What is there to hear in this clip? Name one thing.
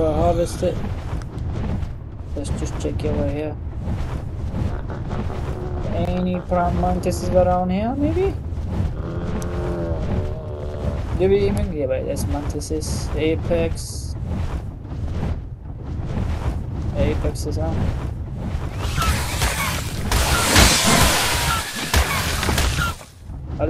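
A large creature's wings beat steadily in flight.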